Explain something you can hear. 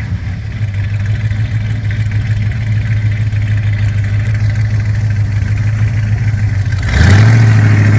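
A big truck engine idles with a deep, steady rumble.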